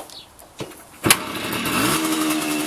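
A motorcycle engine kicks over and sputters into life.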